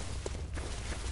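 Footsteps crunch through dense undergrowth.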